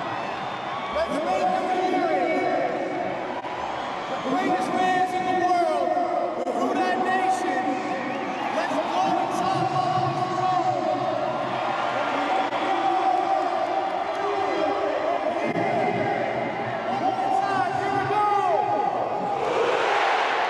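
A large crowd sings along in unison.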